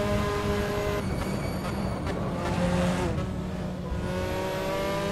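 A racing car engine drops in pitch as it slows down.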